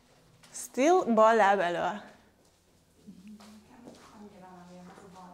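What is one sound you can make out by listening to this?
A woman gives instructions in a lively, sing-song voice in a room with a slight echo.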